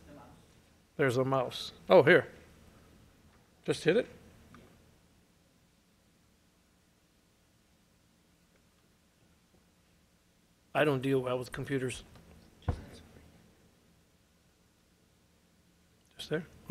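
A middle-aged man speaks calmly into a microphone, in bursts with long pauses.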